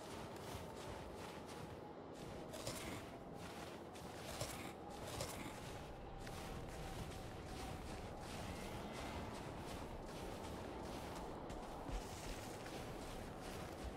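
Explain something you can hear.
Wind gusts and rushes steadily.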